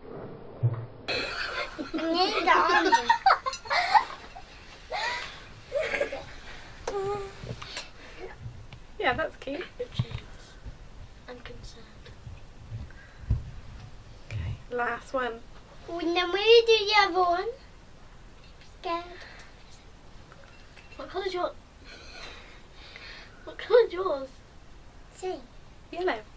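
A small child speaks and squeals in a high voice.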